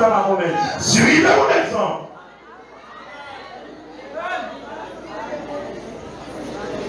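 A young man preaches with passion through a microphone and loudspeakers, in a large echoing hall.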